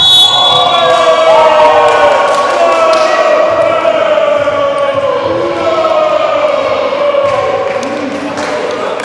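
Young men shout and cheer loudly in a large echoing hall.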